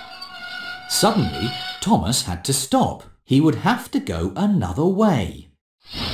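A young man's voice speaks with alarm.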